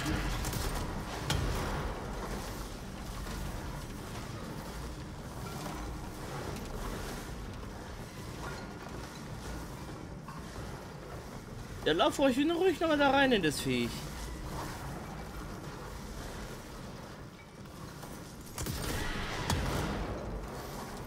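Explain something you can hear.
Debris clatters and scatters across the floor.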